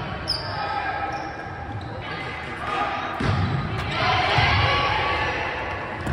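A volleyball is struck with a smack of hands.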